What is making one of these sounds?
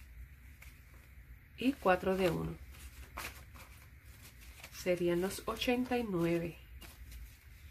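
Paper banknotes rustle and crackle as they are handled.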